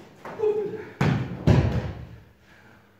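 A body thuds heavily onto a padded mat.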